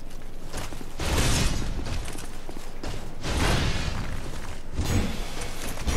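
A large monster lunges with heavy whooshing thuds.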